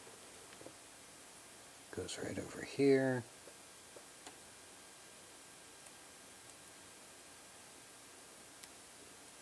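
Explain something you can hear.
A small circuit board clicks and taps softly as fingers handle it.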